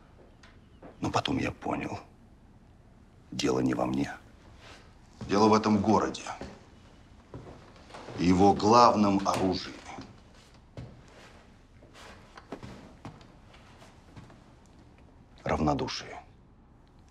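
A man speaks calmly and seriously nearby.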